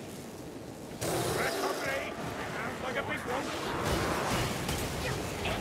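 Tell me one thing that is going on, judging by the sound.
Monsters snarl and shriek in a loud fight.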